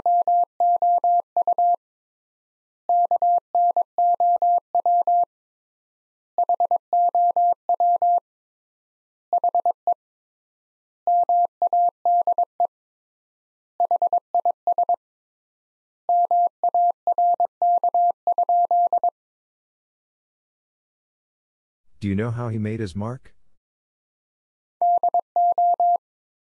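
A telegraph key taps out rapid bursts of steady high Morse code beeps.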